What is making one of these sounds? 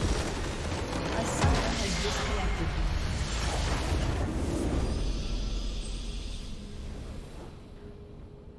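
A huge magical blast booms and crackles, then fades away.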